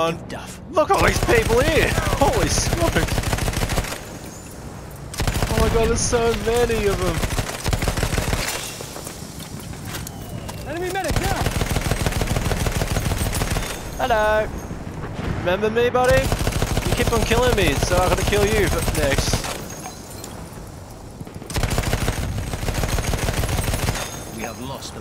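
A machine gun fires in long rapid bursts.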